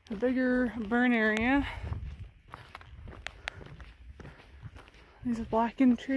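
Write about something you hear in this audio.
Footsteps crunch on a gravel trail.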